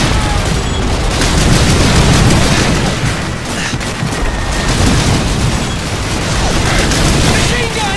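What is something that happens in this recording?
Shell explosions boom and throw up earth.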